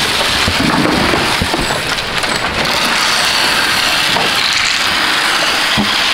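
Feed pellets pour and rattle into a plastic trough.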